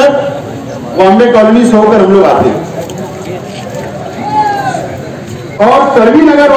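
A man speaks loudly and forcefully into a microphone, heard through loudspeakers outdoors.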